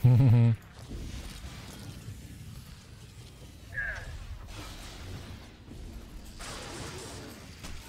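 Electric lightning crackles and buzzes.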